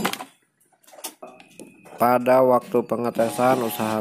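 A plug clicks into a power socket.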